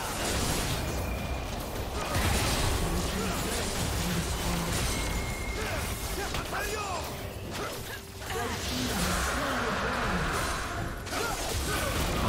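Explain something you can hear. Battle effects crackle and clash with magic blasts.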